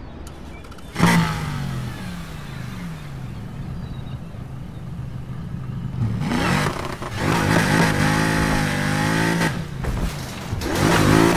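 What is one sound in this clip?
A car engine revs hard, rising and falling in pitch.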